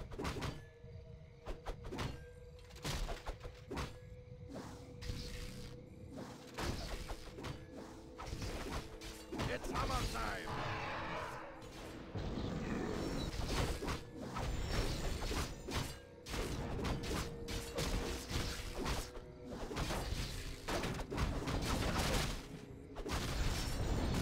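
Magic spells burst and whoosh.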